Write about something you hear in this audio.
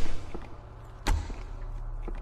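A heavy melee blow lands with a thud.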